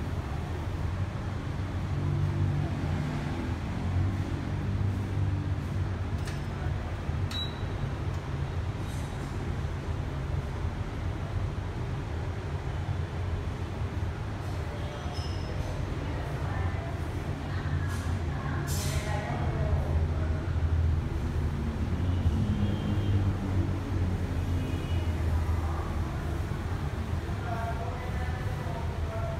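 An electric motor hums steadily.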